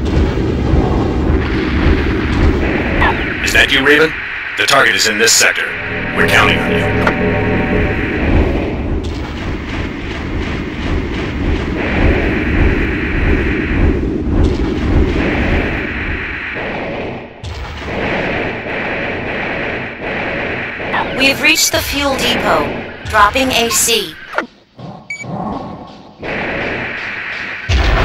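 A gun fires bursts of shots.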